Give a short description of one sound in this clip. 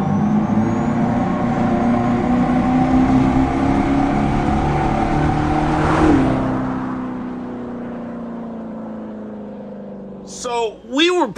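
A car engine roars loudly as the car approaches, then fades away.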